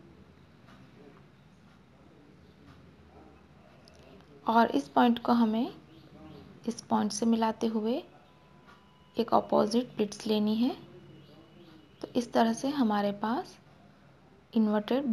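Cloth rustles softly as hands smooth and fold it.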